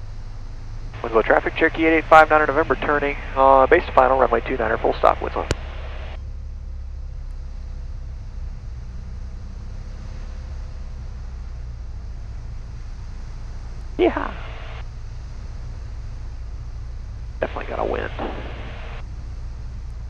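A man speaks briefly over a headset intercom.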